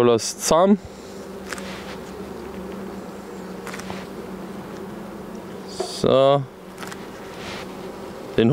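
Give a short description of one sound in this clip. Bees buzz steadily.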